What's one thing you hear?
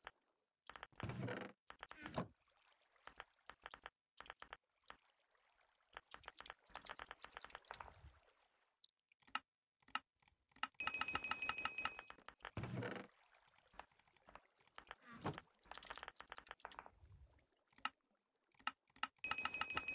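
Short clicks sound from a game menu.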